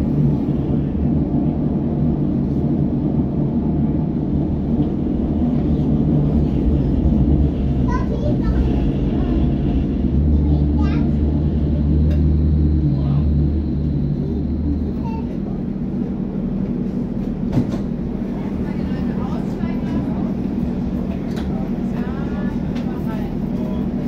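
A train rumbles and rattles steadily along the tracks, then quietens as it slows.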